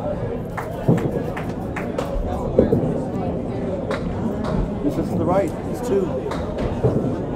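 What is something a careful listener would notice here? A bowling ball rumbles down a lane.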